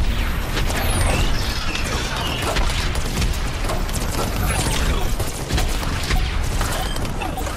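Rapid gunfire blasts in quick bursts.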